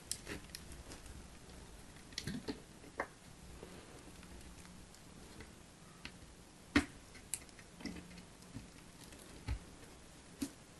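Fingers pick and crumble brittle chalky bits with soft crackles and crisp clicks, close up.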